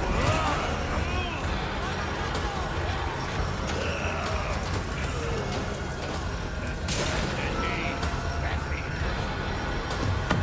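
Footsteps run over dirt and gravel.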